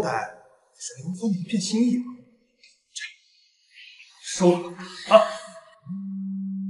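A young man speaks in a teasing, mocking tone close by.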